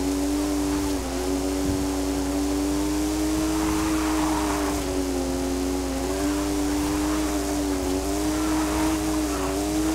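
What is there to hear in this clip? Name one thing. A car engine roars steadily at high revs, dipping briefly with each gear change.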